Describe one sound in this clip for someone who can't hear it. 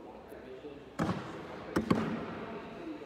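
Bean bags thud onto a wooden board.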